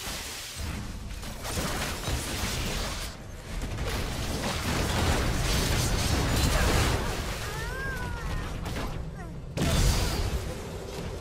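Game combat sound effects of spells and blasts clash rapidly.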